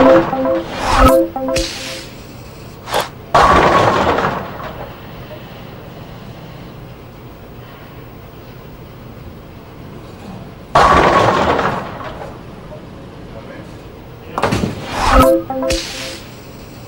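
Bowling pins crash and clatter as a ball strikes them.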